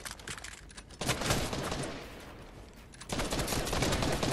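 Building pieces clatter and bang rapidly into place.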